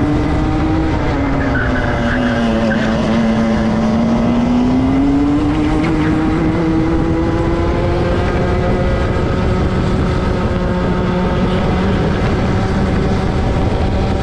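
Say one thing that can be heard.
A small kart engine whines loudly close by, its pitch dipping and rising with speed.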